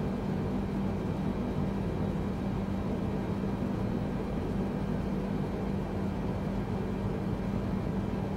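Jet engines drone steadily with a low, even hum.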